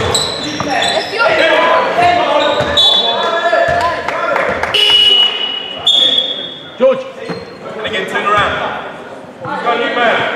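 Spectators and players shout and call out in a large echoing hall.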